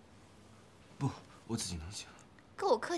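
A young man speaks weakly and quietly.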